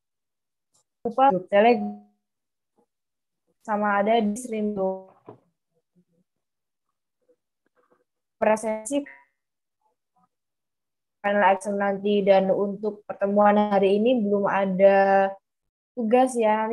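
A young woman speaks calmly over an online call, with pauses.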